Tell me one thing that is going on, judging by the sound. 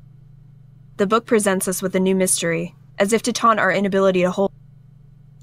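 A young woman reads out calmly and close to a microphone.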